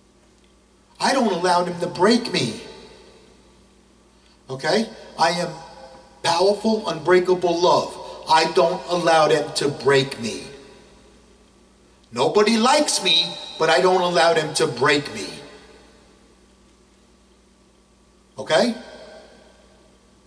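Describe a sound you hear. A middle-aged man speaks forcefully into a microphone, close up, with pauses between phrases.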